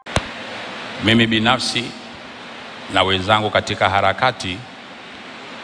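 A man speaks into a microphone in slow, emphatic phrases.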